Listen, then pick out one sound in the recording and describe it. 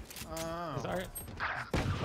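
A pistol fires sharp shots.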